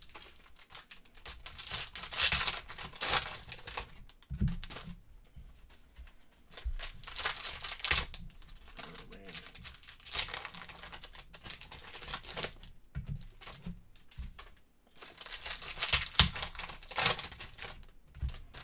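Foil card wrappers crinkle and tear as hands open packs.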